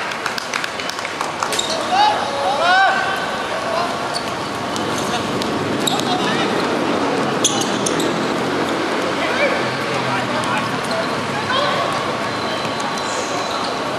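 Sneakers squeak on the court surface.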